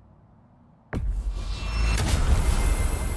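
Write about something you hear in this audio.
A bright magical shimmer swells loudly.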